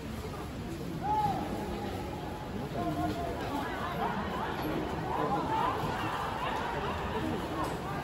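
Football players shout to each other from a distance across an open pitch.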